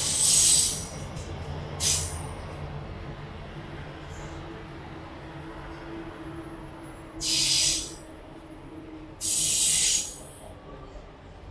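A train rumbles across a bridge in the distance.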